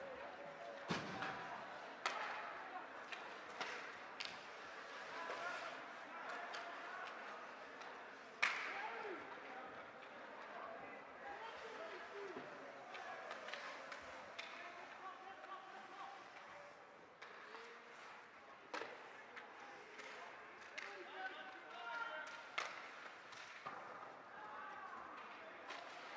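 A crowd of spectators murmurs and calls out in a large echoing rink.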